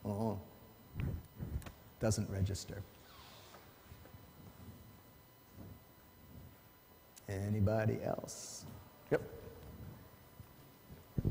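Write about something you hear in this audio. A man speaks calmly to an audience in a large, echoing hall.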